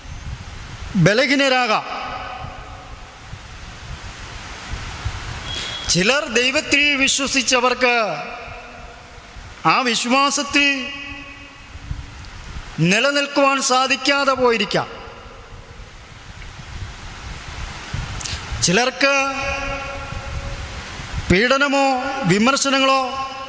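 A young man sings short phrases close to a microphone, with pauses between them.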